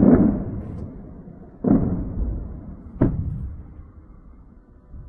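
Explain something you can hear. Distant explosions boom and rumble.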